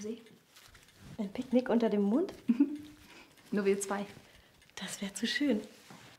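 A second young woman answers in a light, cheerful voice.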